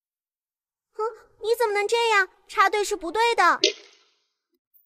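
A young boy speaks indignantly, close by.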